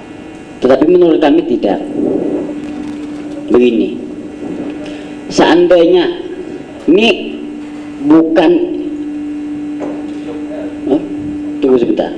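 A young man sings a long, wavering chant into a microphone, his voice loud and echoing through loudspeakers.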